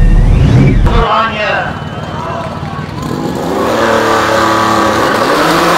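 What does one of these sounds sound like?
A race car engine revs hard and launches from outdoors.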